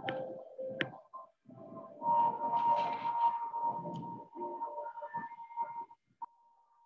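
Paper pages rustle as they are flipped.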